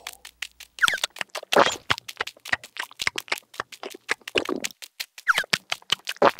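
Many tiny feet patter quickly across the ground.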